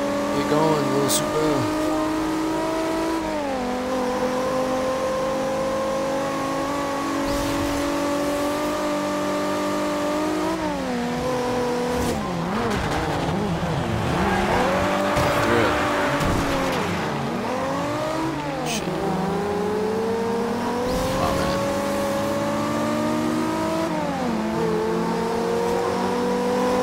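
A sports car engine roars loudly, shifting gears as it races.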